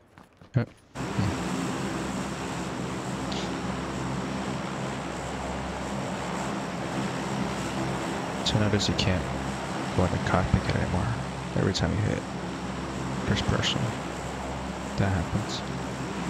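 A large propeller plane's engines drone steadily.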